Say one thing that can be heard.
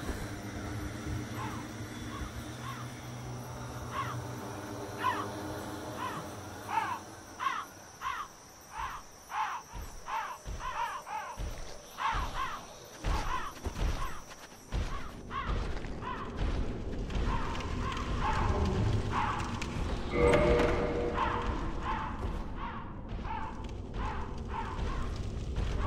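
Heavy armoured footsteps clank steadily on stone.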